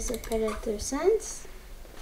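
A computer mouse clicks.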